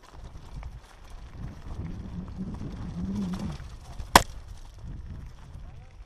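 Mountain bike tyres rumble and crunch over a rocky dirt trail.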